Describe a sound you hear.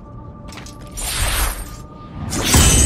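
A blade whooshes loudly through the air.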